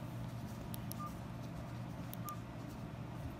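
A smartwatch gives short, quiet beeps.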